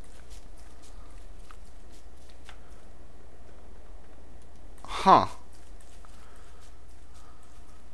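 Footsteps rustle softly over grass.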